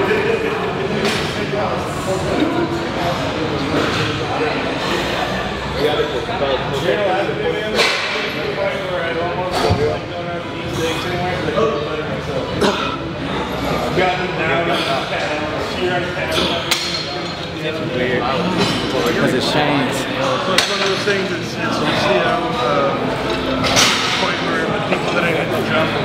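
Weights on a gym machine clank as they are lifted and lowered.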